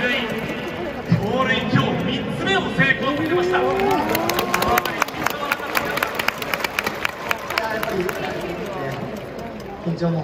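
Many fans clap in rhythm.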